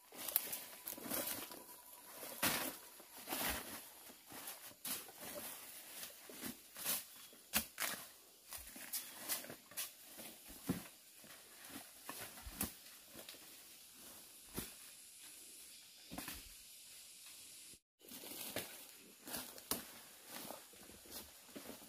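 Footsteps crunch and rustle through dry fallen leaves nearby.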